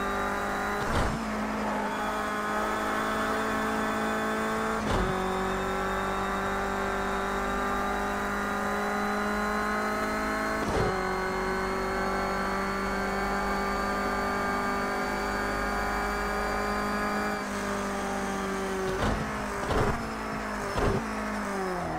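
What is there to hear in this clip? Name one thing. A car engine shifts gears with sharp clicks.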